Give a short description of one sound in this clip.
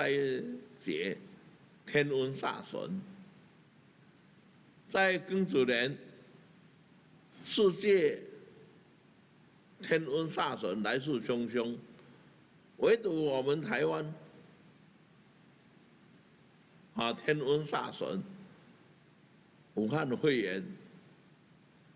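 An elderly man speaks slowly and deliberately into a microphone, in short phrases with long pauses.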